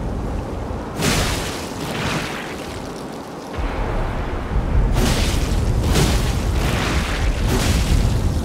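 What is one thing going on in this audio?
Heavy blows strike a creature with sharp, crashing impacts.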